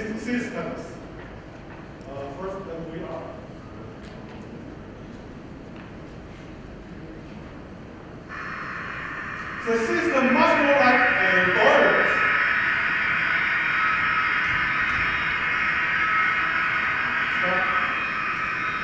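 A man speaks through a microphone in a large echoing hall, pausing now and then.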